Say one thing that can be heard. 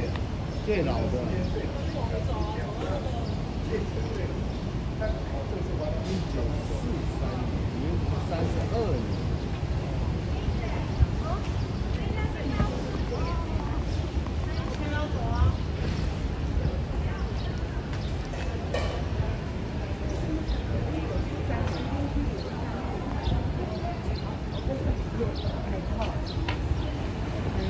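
Street traffic rumbles steadily in the background.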